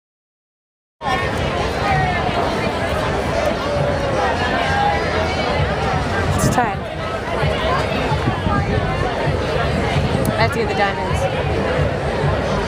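A young woman speaks casually right beside the microphone.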